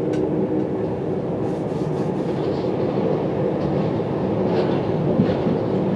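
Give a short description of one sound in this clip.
A passing train rushes by close at hand.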